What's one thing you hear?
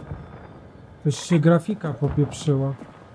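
A man speaks with animation close to a headset microphone.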